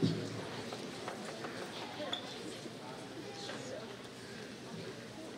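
A crowd of young people murmurs and chatters quietly in a large echoing hall.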